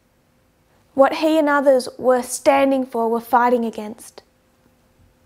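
A woman speaks calmly and clearly, close to a microphone.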